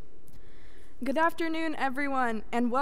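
A young woman speaks through a microphone in a large echoing hall.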